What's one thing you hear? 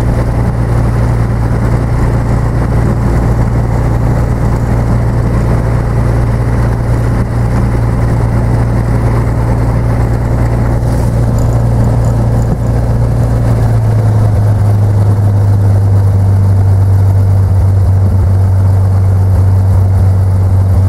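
Propeller aircraft engines drone loudly and steadily nearby, with a deep throbbing hum.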